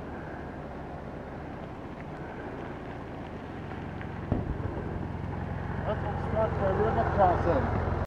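A dual-sport motorcycle approaches on a gravel road.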